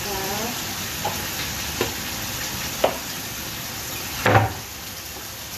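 Dishes clink and knock at a sink now and then.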